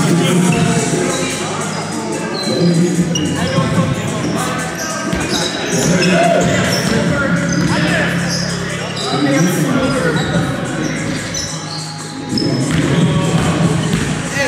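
Shoes squeak sharply on a hard floor in a large echoing hall.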